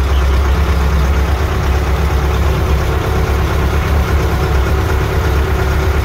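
An old engine rumbles and chugs steadily close by.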